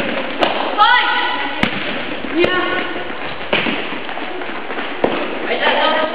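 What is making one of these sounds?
A ball is kicked with sharp thuds that echo in a large hall.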